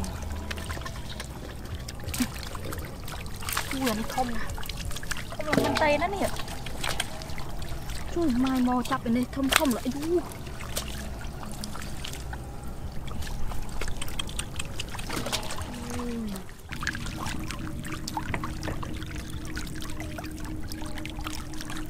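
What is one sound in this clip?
Fish splash and thrash in shallow water close by.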